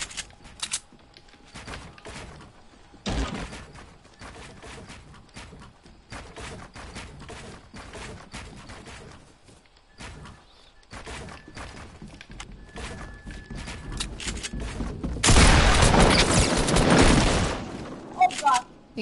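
Wooden panels knock and clatter as they are quickly built.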